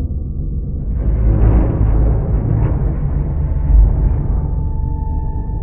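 A heavy metal shutter rumbles as it slides open.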